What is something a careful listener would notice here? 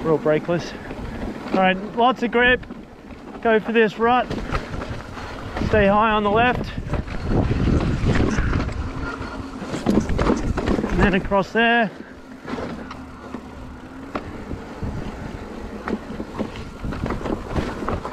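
Bicycle tyres roll and rumble over rough rock.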